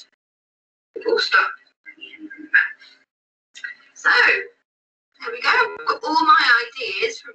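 A woman speaks calmly nearby.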